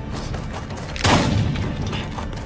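A shotgun fires a single loud blast.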